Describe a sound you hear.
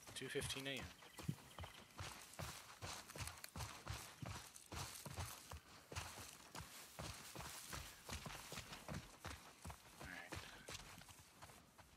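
Footsteps rustle and swish through dense leafy undergrowth at a steady walking pace.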